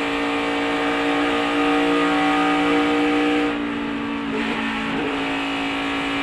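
A race car engine roars loudly at high speed, close by.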